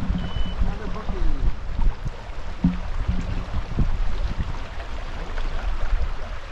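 Rubber waders slosh and splash through shallow water.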